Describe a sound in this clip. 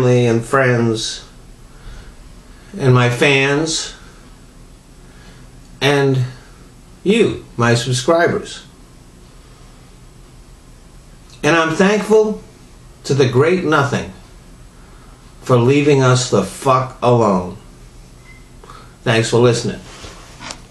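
An elderly man speaks slowly and calmly close to a microphone, with long pauses.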